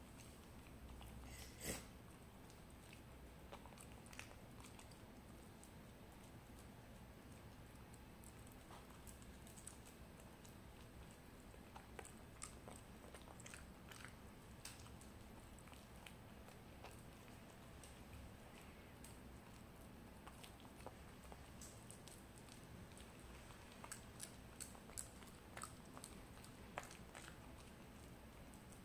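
A dog licks and chews a small treat with wet smacking clicks.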